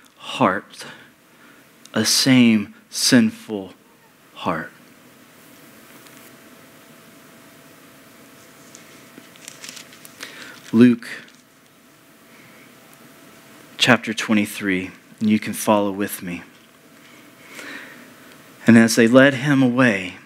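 A man speaks calmly into a microphone with pauses, in a large echoing room.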